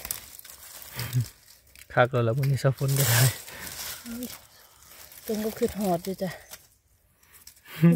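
Dry leaves rustle and crackle as hands move through them.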